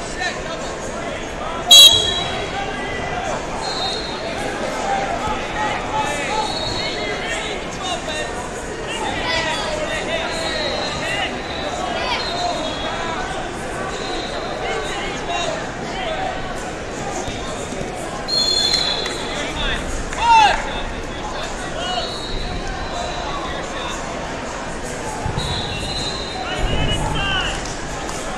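Spectators shout and cheer from the stands.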